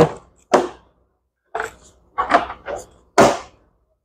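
A plastic lid thumps shut.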